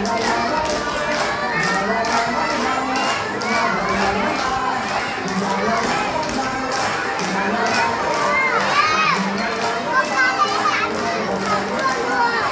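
Upbeat music with a steady beat and singing plays loudly over loudspeakers.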